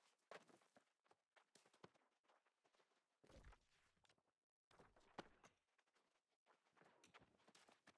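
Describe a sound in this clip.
Footsteps crunch faintly on snow.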